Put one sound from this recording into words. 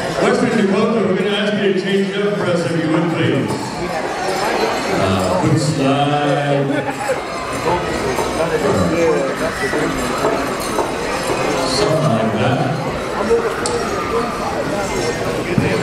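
Small bells and metal jingles on dancers' outfits rattle with their steps.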